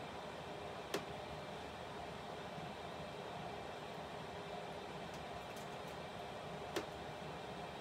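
Small objects click softly as they are handled.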